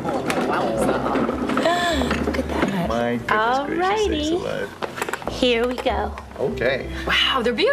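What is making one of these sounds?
A middle-aged woman speaks cheerfully nearby.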